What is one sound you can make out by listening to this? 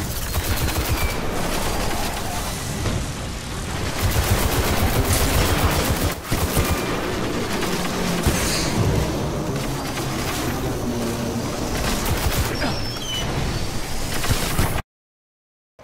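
Rapid gunfire crackles.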